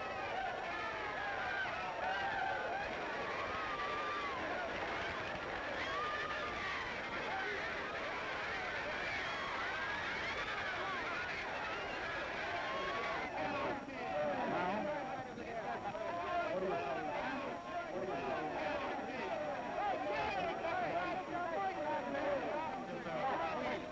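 A large crowd of men and women chatters and calls out excitedly close by.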